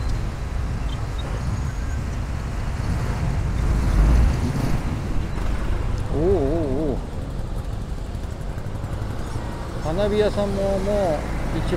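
A motorbike engine rumbles steadily in slow traffic.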